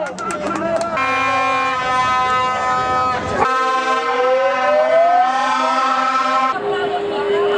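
Plastic horns blare loudly and steadily.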